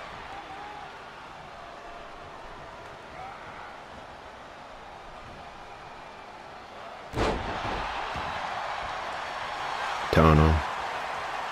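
A large crowd cheers and murmurs steadily in a big arena.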